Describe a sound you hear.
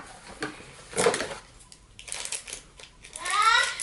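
Plastic packaging crinkles in a girl's hands.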